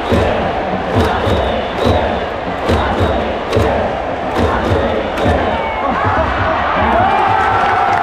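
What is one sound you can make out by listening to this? A large stadium crowd chants loudly in rhythm outdoors.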